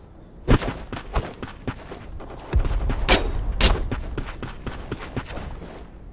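A knife swishes through the air.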